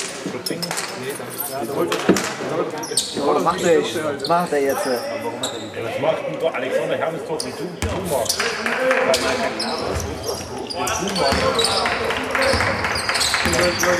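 Players call out across a large echoing hall.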